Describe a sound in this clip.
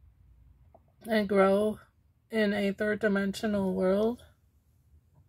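A woman speaks close by in a drawn-out, sighing voice.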